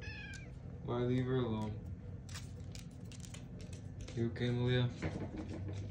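A cat meows loudly, close by.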